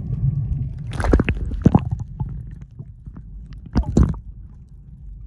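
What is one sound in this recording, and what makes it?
Water splashes loudly close by.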